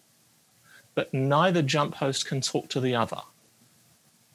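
A middle-aged man speaks calmly into a microphone over an online call.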